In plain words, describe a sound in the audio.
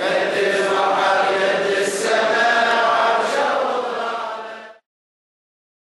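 A man chants in a melodic voice.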